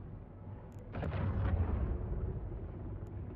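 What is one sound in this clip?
A spaceship warps in with a loud whooshing rumble.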